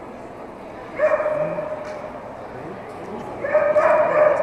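A man shouts commands in a large echoing hall.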